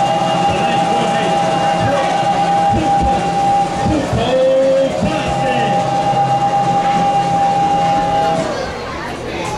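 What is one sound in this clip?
A brass band holds long, loud notes outdoors.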